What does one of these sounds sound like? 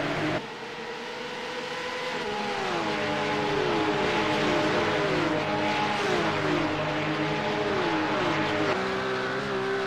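Several race cars whine past in a pack.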